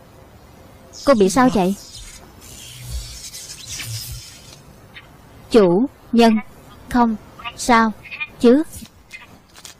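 A young woman speaks close by in short, halting words.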